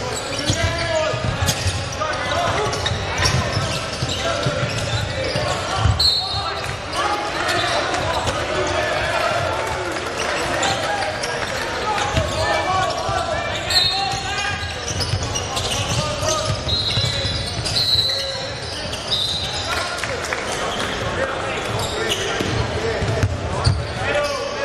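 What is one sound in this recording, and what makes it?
A basketball bounces with dull thumps on the floor.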